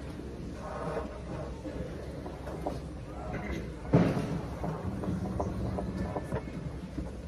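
A trombone plays close by.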